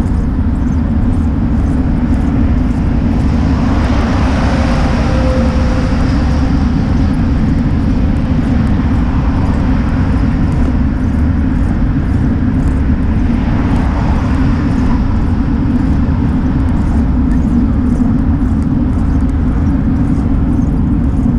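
Tyres rumble steadily on the road from inside a moving car.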